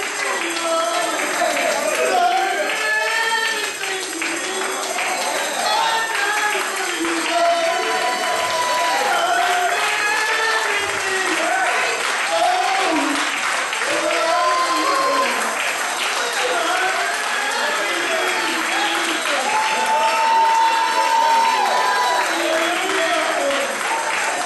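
A congregation sings loudly with animation in a reverberant hall.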